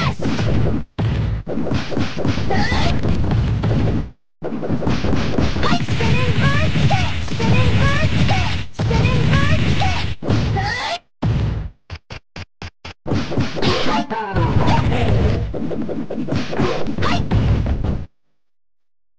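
Rapid punches and kicks land with heavy thuds and smacks.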